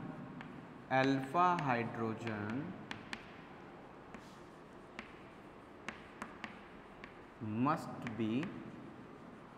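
A man speaks in a slow, drawn-out manner, heard nearby in a room.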